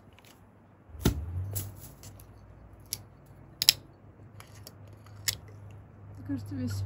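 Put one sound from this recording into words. A plastic water bottle crinkles and crackles in hands.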